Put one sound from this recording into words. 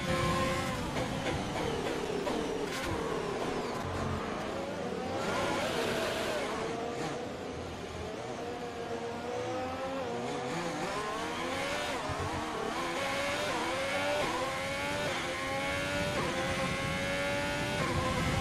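A racing car engine revs high and shifts through gears.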